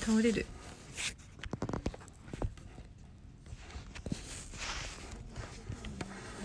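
A young woman sniffles.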